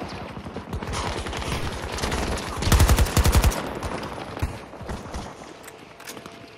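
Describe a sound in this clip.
Distant gunfire and explosions rumble all around.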